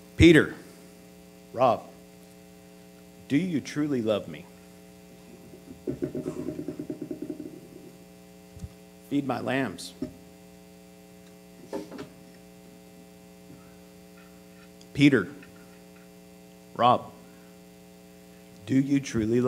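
A middle-aged man speaks slowly and deliberately through a microphone, with long pauses between phrases.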